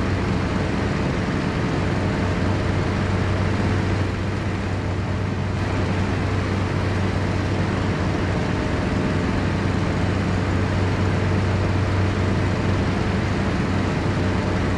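Wind rushes steadily past an aircraft cockpit.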